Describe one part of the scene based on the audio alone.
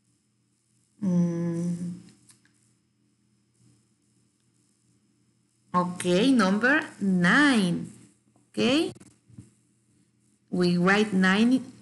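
A woman speaks calmly and expressively into a microphone, close by.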